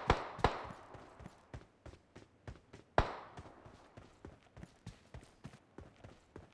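Footsteps fall on dirt and grass in a video game.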